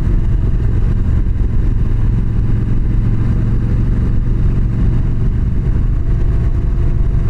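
Wind buffets past the rider.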